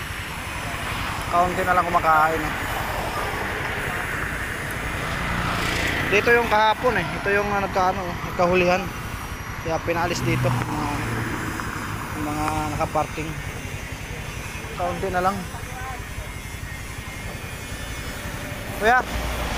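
A motor scooter engine hums while riding slowly.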